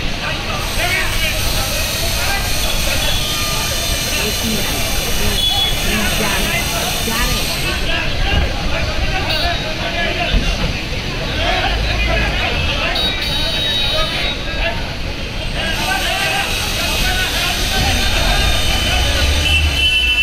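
A busy street hums with traffic and motorbike engines.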